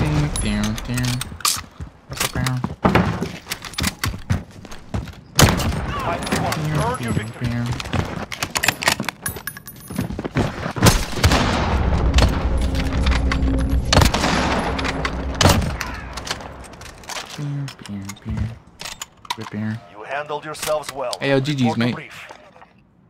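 Gunshots crack sharply, one at a time.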